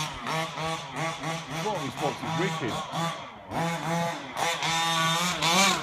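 A small remote-control car's motor whines and revs up and down.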